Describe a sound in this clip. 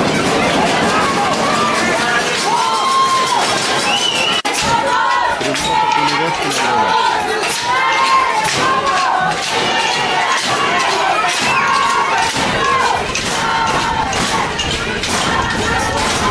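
Men shout with animation from the sideline close by.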